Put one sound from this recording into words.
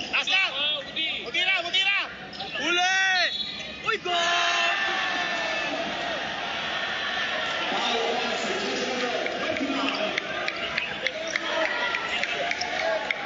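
A large crowd cheers and chatters in an echoing hall.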